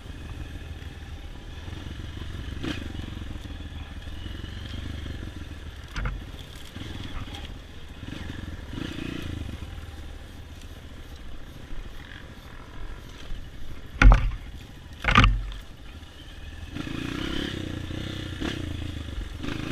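A dirt bike engine runs and revs on a rough trail.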